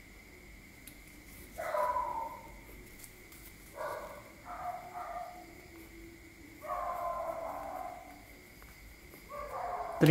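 A pen scratches across paper as it writes.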